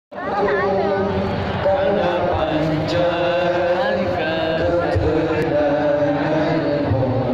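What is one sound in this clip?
A large crowd sings together loudly outdoors.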